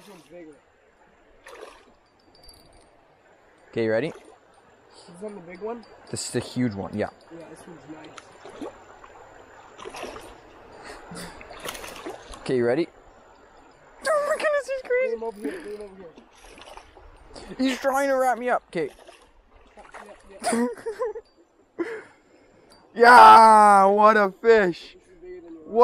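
Water swishes as someone wades through a shallow stream.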